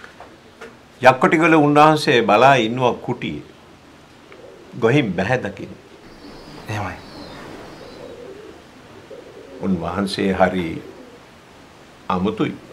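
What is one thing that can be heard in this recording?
An elderly man speaks calmly and with feeling, close by.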